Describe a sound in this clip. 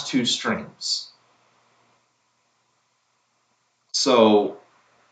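A young man speaks in short bursts close by.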